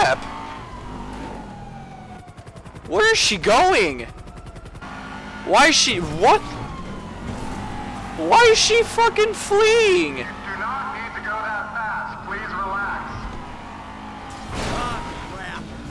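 A car engine roars as a car speeds along a road.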